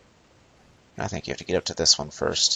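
A man speaks up with some urgency.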